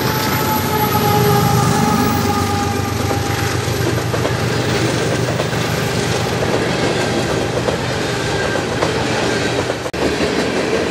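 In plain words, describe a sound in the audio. Diesel locomotives rumble loudly as they pass close by.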